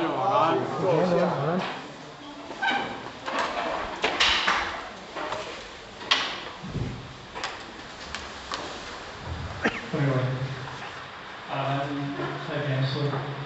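An elderly man speaks calmly through a microphone in a large room with echoes.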